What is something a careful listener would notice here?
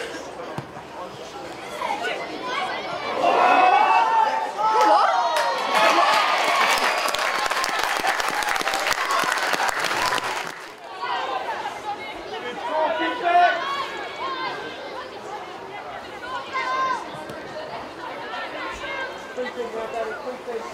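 Women players shout to each other across an open pitch outdoors.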